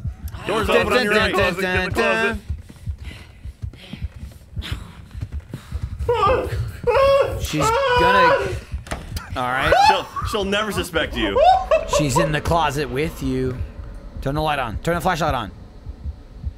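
A young man talks with animation, heard close through a microphone.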